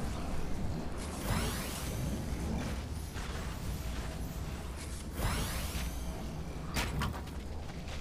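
Walls snap into place with quick, rising whooshes.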